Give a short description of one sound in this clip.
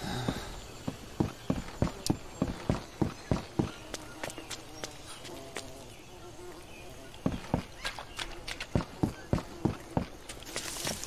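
Footsteps thud steadily on a wooden log.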